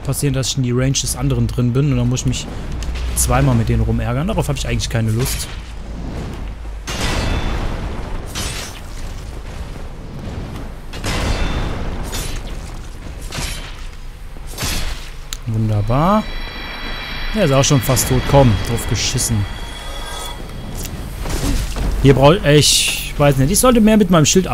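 Metal weapons clash and strike in a fight.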